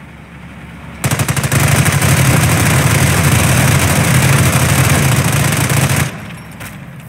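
Explosions and gunfire rumble loudly in a battle.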